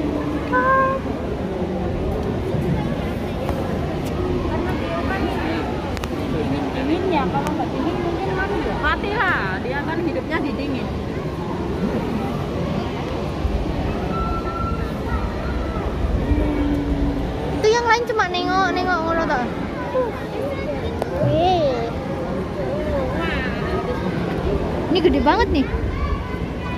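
Water splashes and sloshes as penguins swim.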